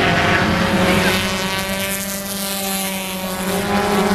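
A race car engine drones past close by, its pitch falling.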